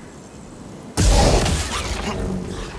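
A lightsaber strikes with a burst of crackling sparks.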